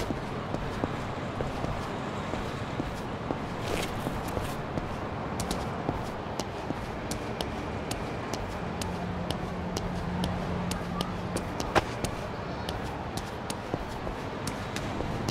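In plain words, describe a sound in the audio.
Footsteps tap steadily on a hard wet floor.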